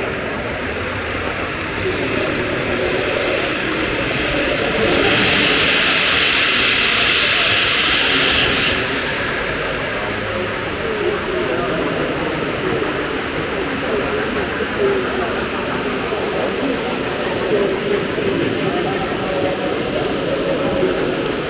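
A model train hums and clicks along the rails.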